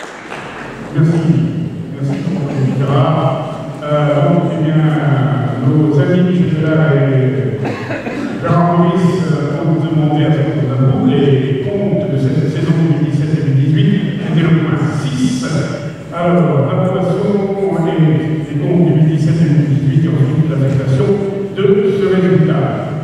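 A man speaks steadily through a microphone and loudspeakers in a large echoing hall.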